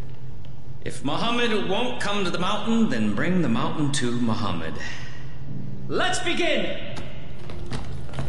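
A man preaches with animation, his voice rising and falling.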